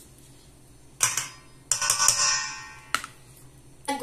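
A metal spoon scrapes and clinks against a metal bowl.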